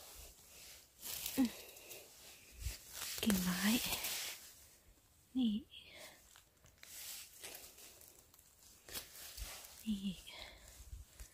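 Dry leaves and twigs rustle close by.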